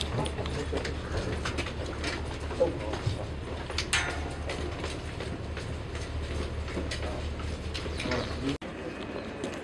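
Footsteps thud down a stairway.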